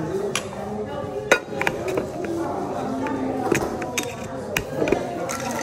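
A metal lid clicks and taps onto a cocktail shaker.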